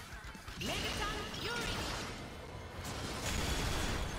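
Energy blasts whoosh and crackle in a burst of hits.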